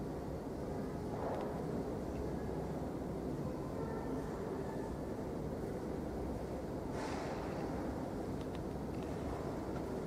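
A censer's metal chains clink softly as it swings.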